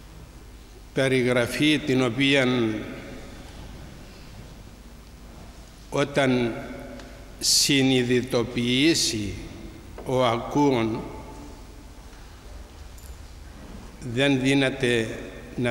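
An elderly man speaks calmly into a microphone in phrases with pauses.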